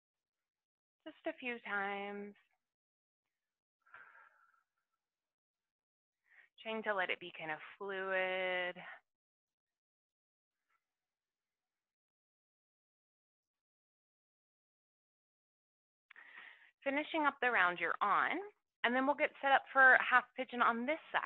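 A young woman speaks calmly and closely into a headset microphone.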